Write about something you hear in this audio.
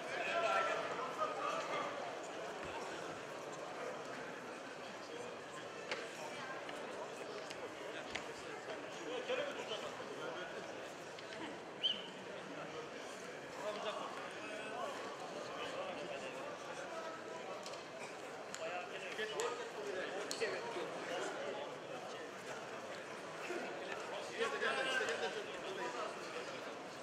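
Feet shuffle and scuff on a padded mat.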